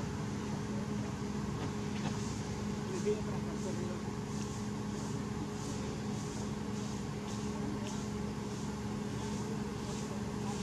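Leaves and branches rustle as a monkey climbs in a tree.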